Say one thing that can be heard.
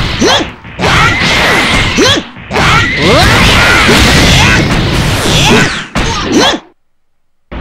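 Energy blasts and punches crash and whoosh in quick bursts.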